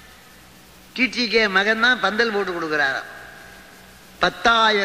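An elderly man chants in a drawn-out singing voice.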